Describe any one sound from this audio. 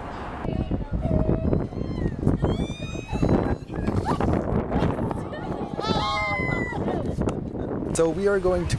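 Young women laugh and shriek with excitement close by.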